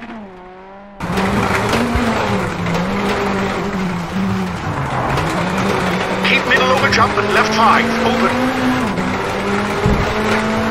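A rally car engine roars from inside the cabin, shifting through gears.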